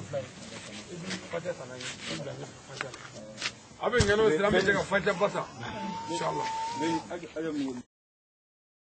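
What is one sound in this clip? A group of young men talk loudly and call out close by.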